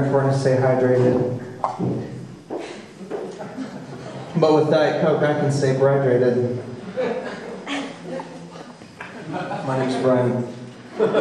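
A man sings into a microphone in a room with some echo.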